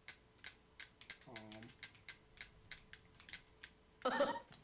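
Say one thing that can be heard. Short electronic menu clicks tick in quick succession.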